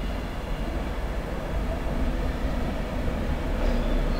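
A train rumbles by at a distance.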